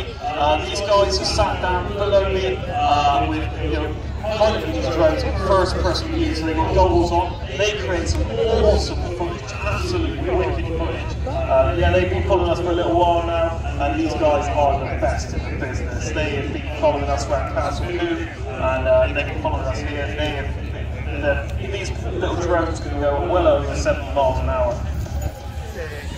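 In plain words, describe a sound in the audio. A man talks steadily close by.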